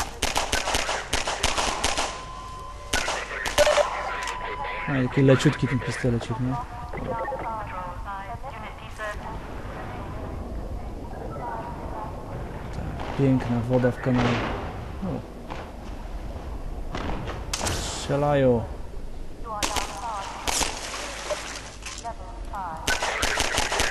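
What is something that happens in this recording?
Pistol shots crack sharply several times.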